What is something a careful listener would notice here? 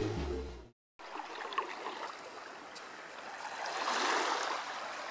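Small waves lap gently on a shore.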